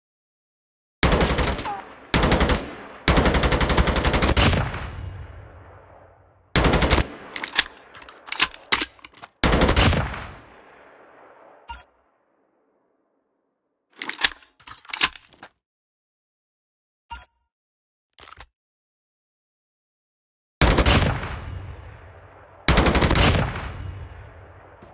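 A rifle fires rapid bursts of loud gunshots that echo away.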